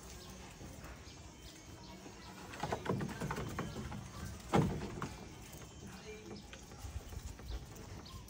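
A monkey chews on a piece of fruit.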